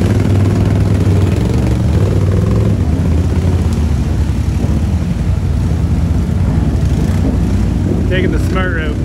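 An engine roars loudly as a quad bike churns through deep mud.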